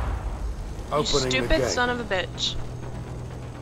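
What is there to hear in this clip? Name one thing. A middle-aged man speaks urgently.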